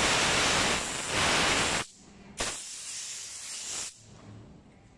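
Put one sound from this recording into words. An air gun blows loud hissing bursts of air.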